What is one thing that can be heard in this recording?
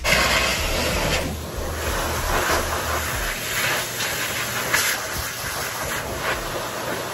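A blow dryer blows air with a steady, loud rushing roar.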